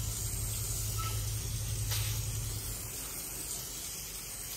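A pressure washer jet hisses as water sprays against a wall.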